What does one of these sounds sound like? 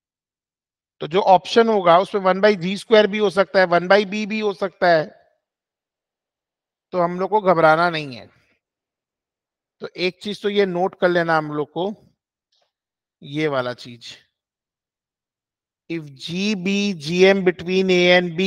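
A man speaks calmly into a microphone over an online call, explaining in bursts with pauses.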